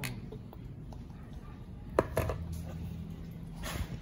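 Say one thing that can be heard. A small plastic object clicks down onto a cardboard box.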